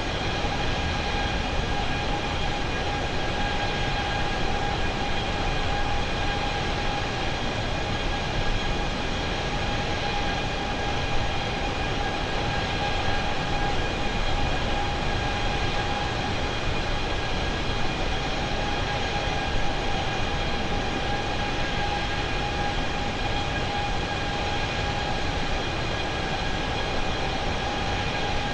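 A jet airliner's engines roar and whine steadily in flight.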